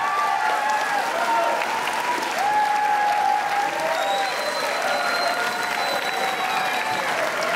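A large crowd claps in a big echoing hall.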